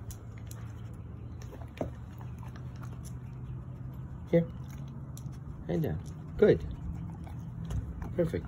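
A dog sniffs at the ground close by.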